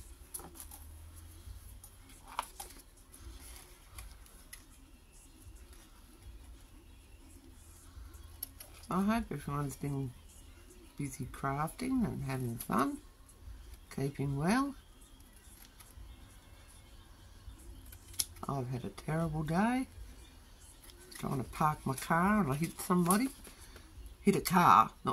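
Scissors cut through paper.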